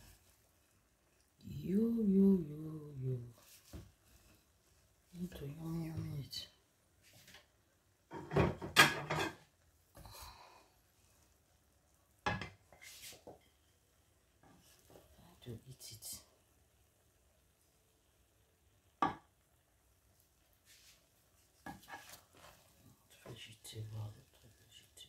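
A wooden spatula stirs and scrapes through rice in a pan.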